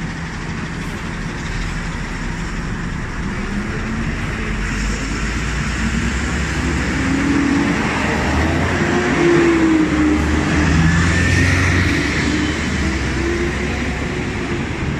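Traffic roars steadily along a busy road outdoors.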